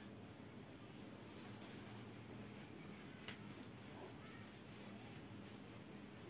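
A cloth rubs across a whiteboard.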